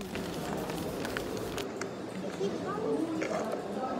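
Keys clatter on a keyboard.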